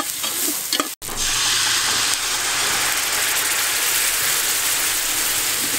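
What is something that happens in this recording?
Liquid pours into the pot with a splash.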